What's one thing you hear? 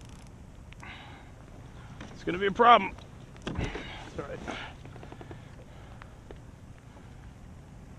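Small waves lap gently against a kayak hull.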